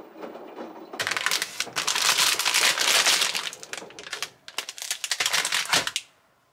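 A plastic packet crinkles and rustles in a hand.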